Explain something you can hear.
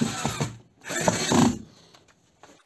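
A cordless screwdriver whirs briefly.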